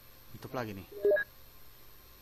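A short electronic chime sounds from a game menu.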